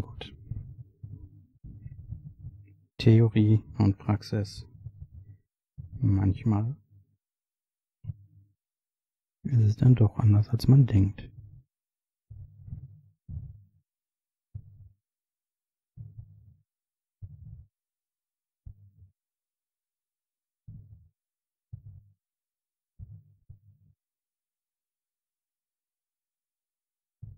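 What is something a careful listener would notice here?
Thin wires rustle softly as fingers handle them.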